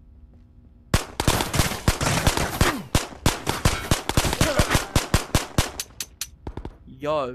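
A pistol fires rapid shots that echo through a hard room.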